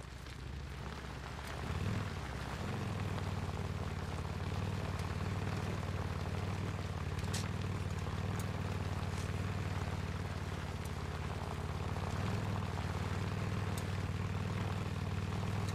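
A motorcycle engine rumbles steadily as it rides along.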